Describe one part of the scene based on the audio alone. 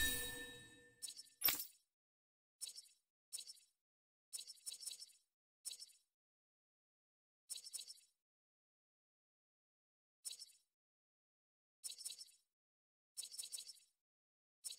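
Short, bright menu ticks sound again and again as a selection moves.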